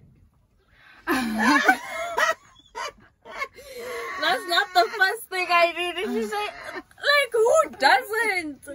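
Young women laugh loudly and excitedly.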